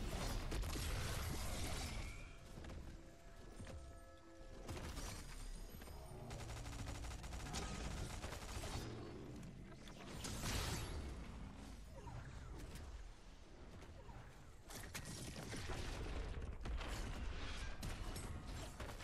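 Gunfire and blasts from a video game crackle and boom.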